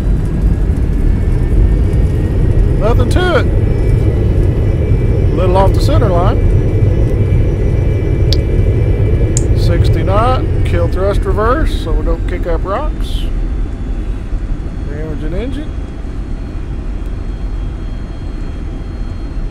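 An aircraft engine roars steadily as the plane speeds down a runway.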